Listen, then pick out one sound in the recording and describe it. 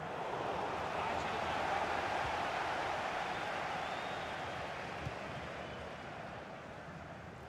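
A stadium crowd roars steadily and slowly fades.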